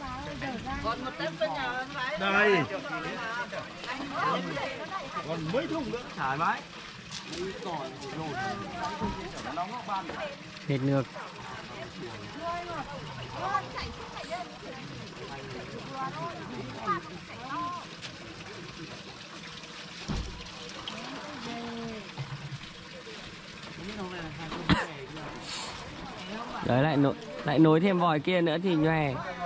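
Several men and women talk outdoors at a distance.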